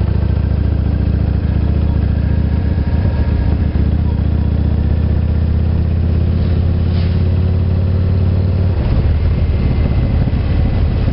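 A car engine hums steadily from inside the car as it drives along.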